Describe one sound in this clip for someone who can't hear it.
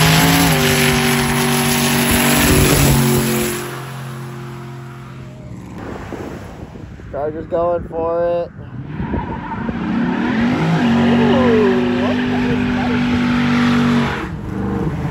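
A car engine roars loudly at high revs.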